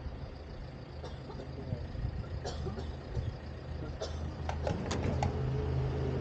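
A fuel nozzle clicks and clatters against the pump.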